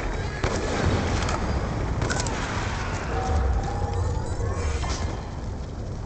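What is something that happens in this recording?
Explosions rumble deeply.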